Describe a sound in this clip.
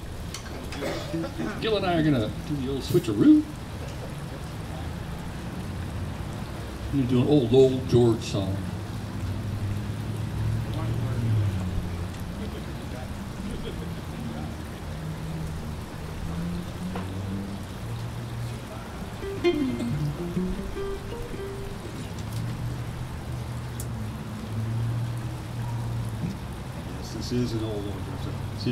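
A man talks casually through a loudspeaker.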